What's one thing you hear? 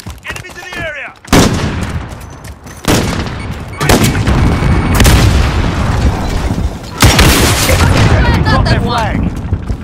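A rocket launcher fires with a heavy blast.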